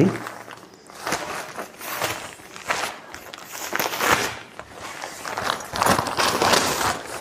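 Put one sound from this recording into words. Nylon fabric rustles and crinkles as a tent bag is handled.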